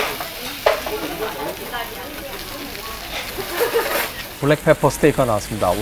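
A steak sizzles loudly on a hot iron plate.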